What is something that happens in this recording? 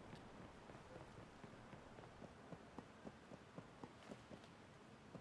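Footsteps clank lightly on metal stairs.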